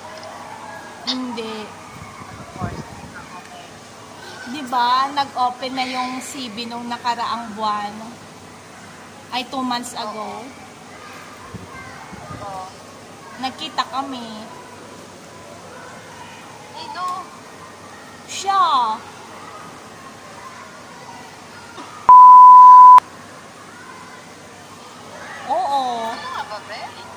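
A young woman talks animatedly, close by, in short bursts.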